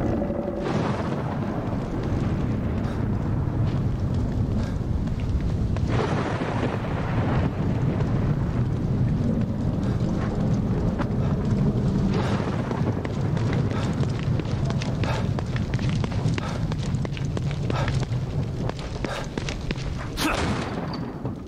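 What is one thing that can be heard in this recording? Footsteps splash on wet pavement at a brisk pace.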